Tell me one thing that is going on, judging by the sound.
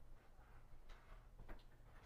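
A man walks with footsteps on a hard floor.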